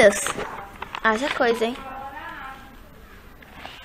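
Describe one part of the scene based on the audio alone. Paper pages rustle as they are flipped.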